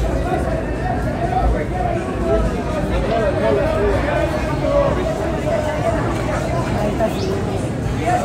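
A crowd murmurs nearby outdoors.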